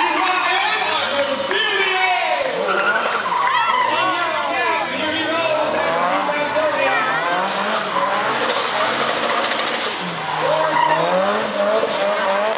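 A car engine revs hard and roars up and down.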